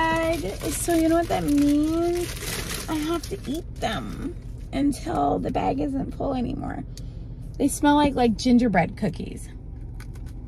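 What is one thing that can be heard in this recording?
A young woman talks casually and close up.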